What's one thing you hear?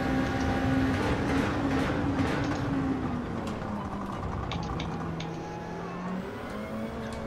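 A racing car engine drops in pitch as it brakes and downshifts.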